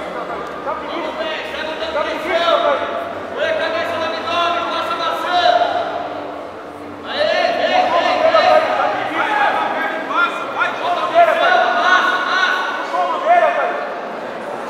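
A crowd of spectators shouts and calls out.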